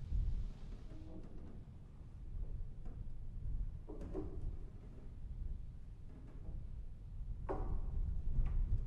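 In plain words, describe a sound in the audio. A man speaks quietly and briefly, close to a microphone.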